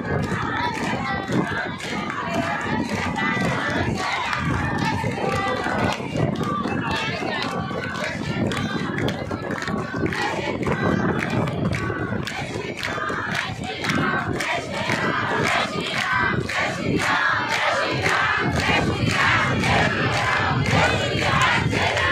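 A large crowd claps hands in rhythm.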